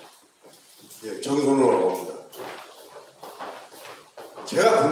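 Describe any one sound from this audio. An elderly man speaks loudly into a microphone in a large echoing room.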